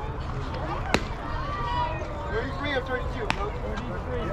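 A softball smacks sharply into a catcher's mitt.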